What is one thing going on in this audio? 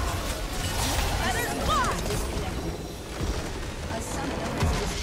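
Game spell effects whoosh and crash in a battle.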